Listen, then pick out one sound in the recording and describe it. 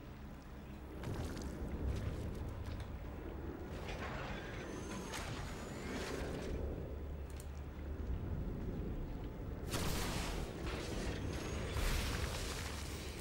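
Game battle effects whoosh and crackle.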